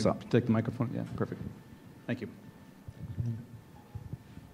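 A man speaks in a large room, heard from a distance.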